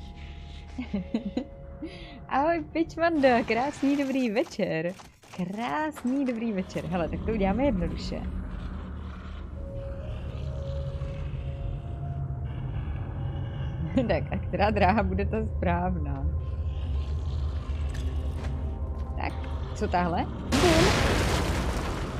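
A young woman talks and laughs with animation, close to a microphone.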